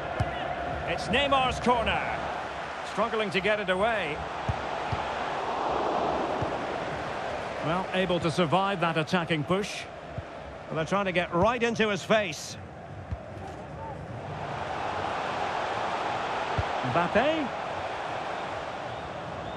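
A crowd roars steadily in a large stadium.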